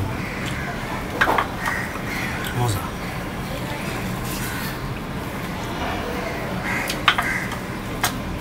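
Fingers scrape and tap on a metal plate while mixing food.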